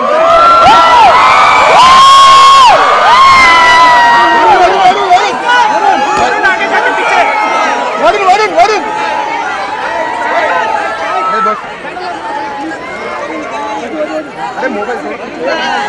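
A large crowd of young people screams and cheers with excitement nearby.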